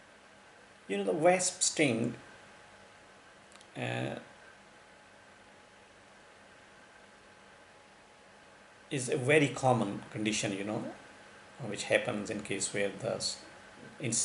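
A man speaks calmly into a nearby microphone, pausing between phrases.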